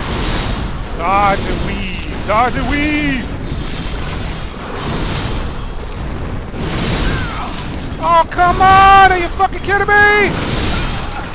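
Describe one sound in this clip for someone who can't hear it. A monstrous creature lets out shrill, wavering shrieks.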